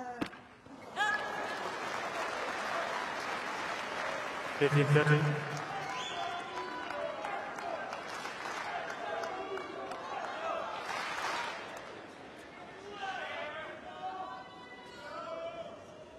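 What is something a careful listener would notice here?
A large crowd cheers and applauds.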